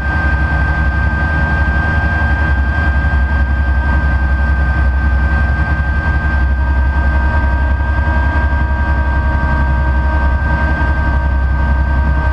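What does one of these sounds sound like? A plane's wheels rumble over a rough grass runway.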